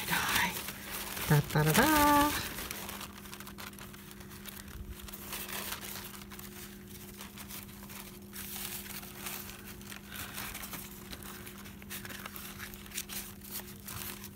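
Fabric rustles and crinkles softly.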